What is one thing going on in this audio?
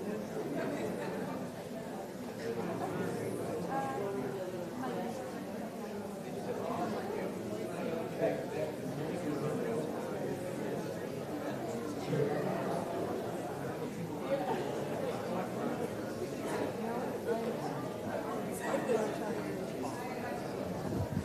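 An audience murmurs and chatters in a large hall.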